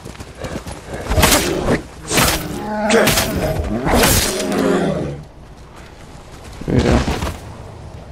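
A sword slashes and strikes.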